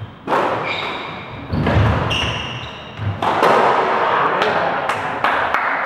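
A squash ball smacks sharply off the walls and rackets, echoing in a hard-walled court.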